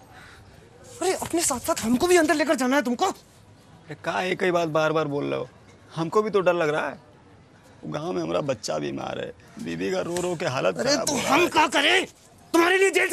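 A young man answers with animation, close by.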